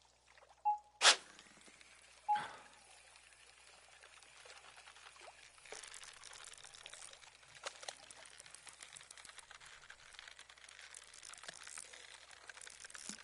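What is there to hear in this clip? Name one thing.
A fish splashes and thrashes at the surface of the water.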